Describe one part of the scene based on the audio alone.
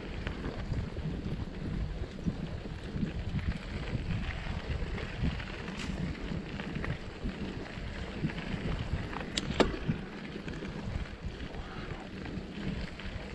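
Bicycle tyres crunch and rumble over a dirt trail.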